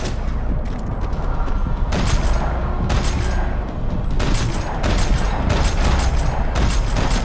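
Gunshots crack and echo in rapid bursts.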